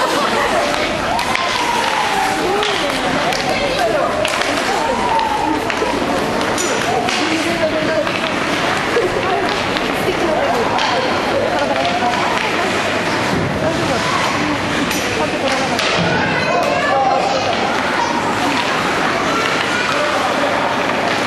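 Spectators talk and cheer in an echoing rink.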